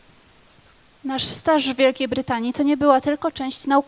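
A young woman speaks loudly over a microphone and loudspeakers in a large hall.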